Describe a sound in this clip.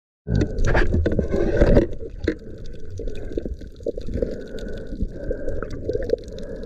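Underwater clicks and crackles sound close by.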